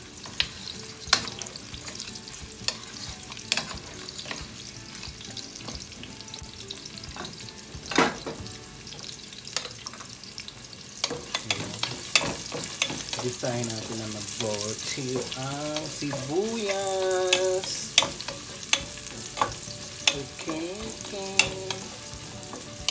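A wooden spoon scrapes and knocks against a pan.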